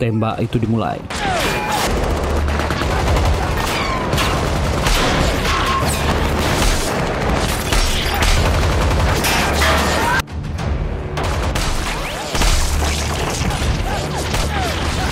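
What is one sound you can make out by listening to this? Guns fire in rapid bursts and echo.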